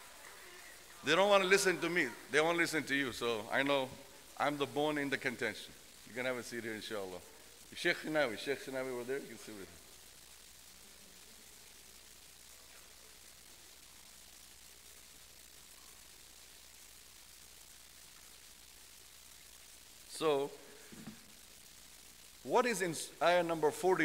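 A man speaks calmly into a microphone, heard through a loudspeaker in a large hall.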